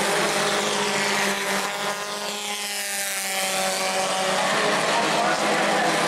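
Race car engines rise and fall in pitch as they pass by.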